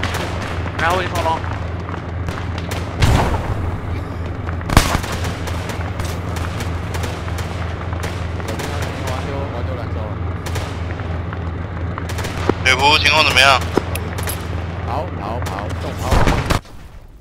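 A tank engine idles with a steady low rumble.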